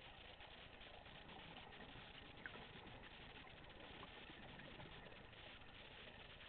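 Scuba divers' air bubbles gurgle and rise, heard muffled underwater.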